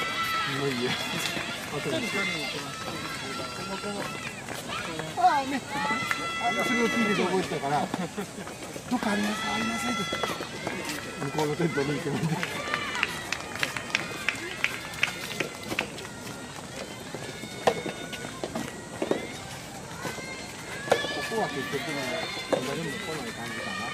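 Young players shout and call out loudly across an outdoor court.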